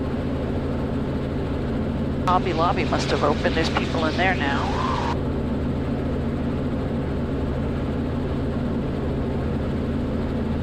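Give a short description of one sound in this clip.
A helicopter engine and rotor drone steadily throughout.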